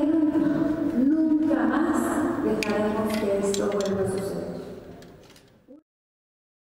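A woman speaks into a microphone with feeling.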